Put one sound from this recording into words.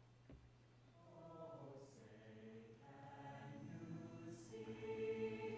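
A woman sings slowly over a loudspeaker in a large echoing hall.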